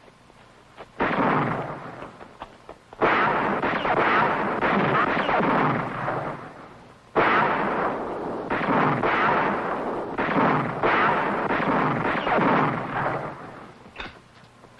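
Gunshots ring out in loud, rapid bursts.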